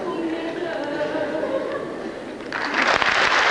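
A children's choir sings in a large hall.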